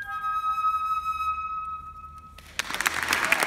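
A flute plays a held note that rings in a large echoing hall.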